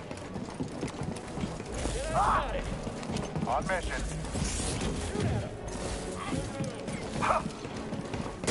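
Blaster shots zap and crack.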